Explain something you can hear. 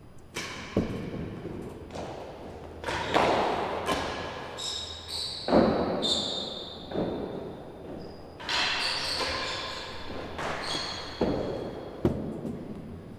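Rackets strike a ball with sharp smacks.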